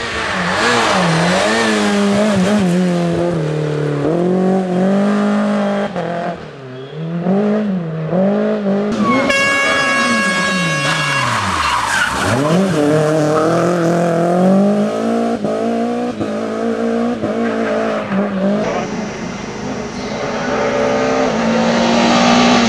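A rally car engine roars and revs hard, rising and falling in pitch as it changes gear.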